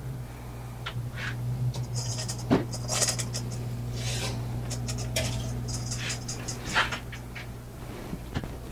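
A man rummages and knocks things about inside a cabinet.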